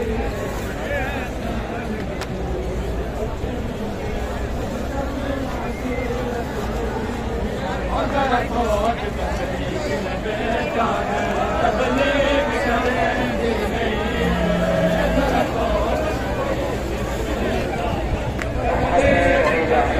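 A large crowd of men and women chants and murmurs loudly together.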